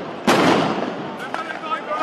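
Fireworks crackle and pop.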